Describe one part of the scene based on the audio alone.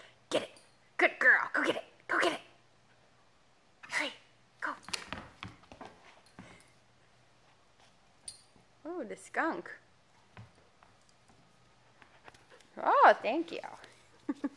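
A squeaky toy squeaks in short bursts as a dog chews it.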